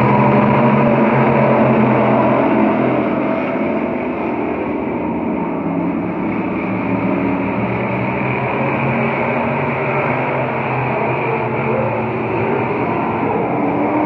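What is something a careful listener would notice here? Race car engines roar loudly around a track, outdoors.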